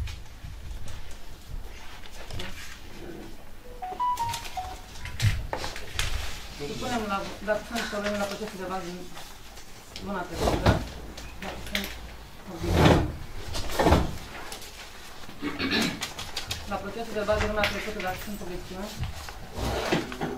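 Papers rustle on a table.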